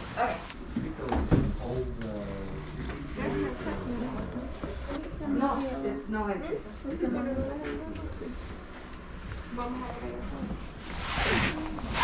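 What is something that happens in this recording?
A plastic bag rustles in hands.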